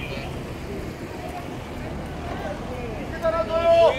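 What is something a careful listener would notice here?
A crowd of people talks and murmurs outdoors.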